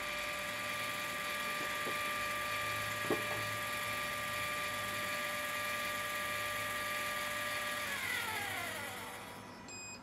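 An electric motor whines steadily, then winds down and stops.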